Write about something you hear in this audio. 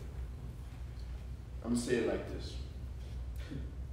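A man speaks through a microphone in an echoing room.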